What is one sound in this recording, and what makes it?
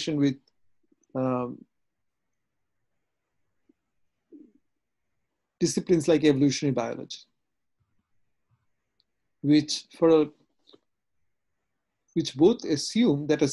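A middle-aged man speaks calmly over an online call, in short phrases with pauses.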